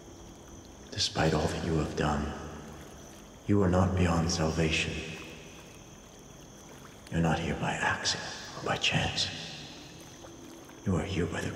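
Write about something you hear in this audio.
A man speaks slowly and menacingly, close up.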